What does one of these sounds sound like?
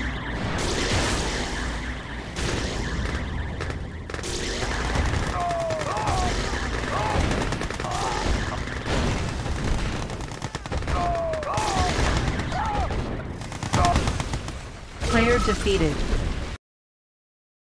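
Game weapons fire and explosions boom in bursts.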